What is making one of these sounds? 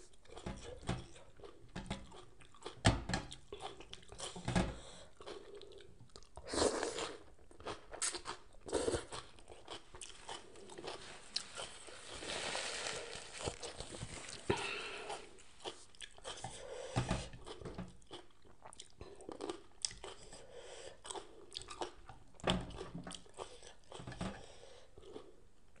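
Crisp vegetables rustle and crunch as fingers pick through them.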